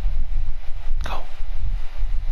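A soft game menu chime sounds.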